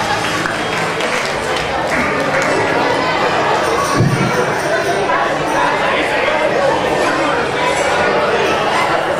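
A group of people sings together through loudspeakers in a large hall.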